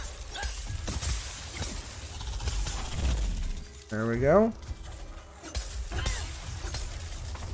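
Weapon strikes land with sharp, crackling hits.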